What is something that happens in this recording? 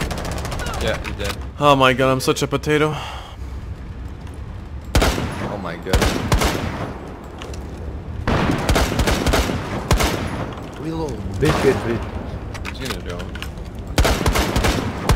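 A rifle fires sharp shots.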